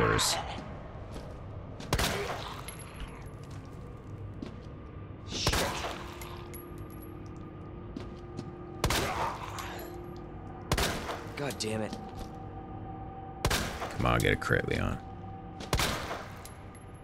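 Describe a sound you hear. Pistol shots ring out one at a time, with a short echo after each.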